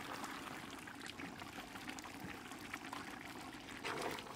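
A metal ladle scrapes and stirs through the stew.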